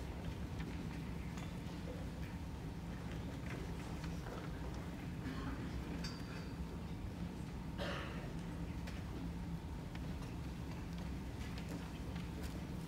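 A choir of young women sings in a large echoing hall.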